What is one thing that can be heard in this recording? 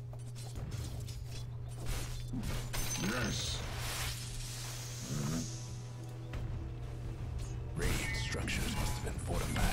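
Swords clash and spells crackle in a fast battle between game characters.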